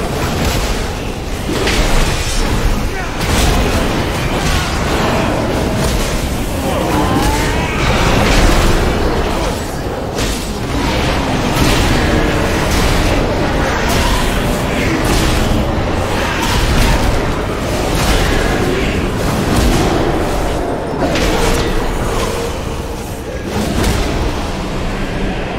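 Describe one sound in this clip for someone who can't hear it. Game spell effects crackle and boom during a battle.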